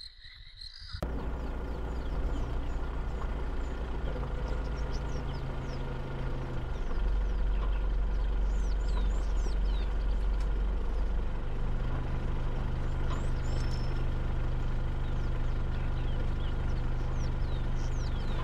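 A vehicle engine rumbles steadily at a low pitch.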